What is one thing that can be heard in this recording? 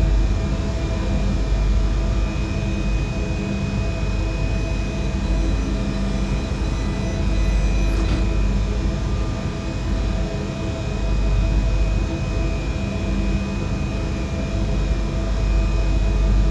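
An electric train hums steadily with a low drone.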